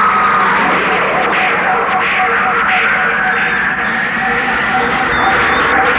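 Magic energy hums and whooshes in a steady rush.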